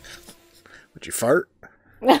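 A young woman laughs nervously close by.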